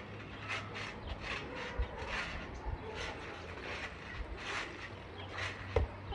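A basketball thuds on a trampoline.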